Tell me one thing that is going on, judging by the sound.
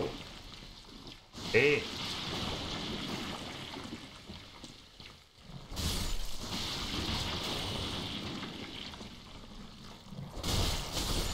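Armoured footsteps crunch and clank over wet ground.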